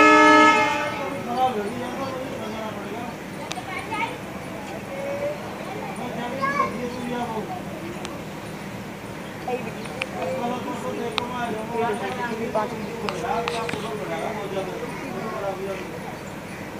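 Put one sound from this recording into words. A young girl talks nearby.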